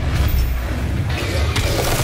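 A heavy gun fires with loud blasts.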